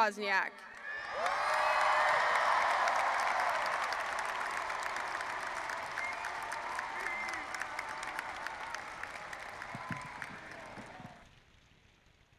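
A crowd applauds and cheers loudly, then fades.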